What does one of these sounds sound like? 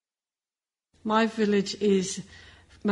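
A middle-aged woman speaks calmly close to a microphone.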